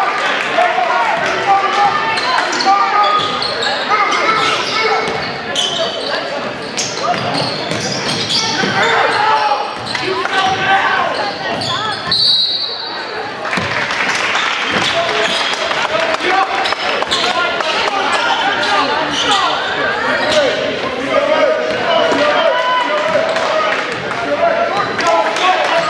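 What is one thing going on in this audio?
A crowd of spectators chatters and cheers in a large echoing gym.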